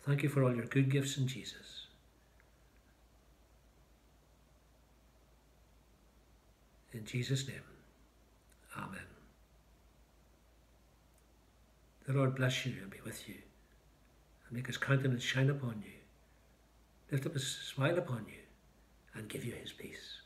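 An older man speaks calmly and slowly into a nearby microphone, with long pauses.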